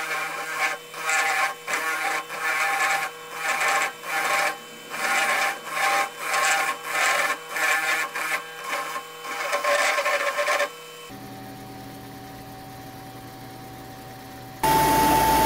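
A small lathe motor hums steadily.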